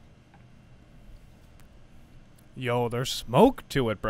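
A man sets a glass down on a table.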